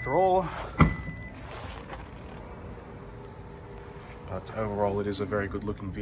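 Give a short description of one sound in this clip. A car's tailgate lifts open with a soft motor hum.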